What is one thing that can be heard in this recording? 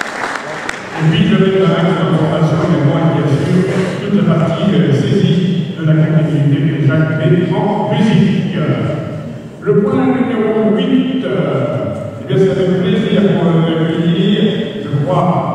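A man speaks calmly through a microphone and loudspeakers in a large echoing hall.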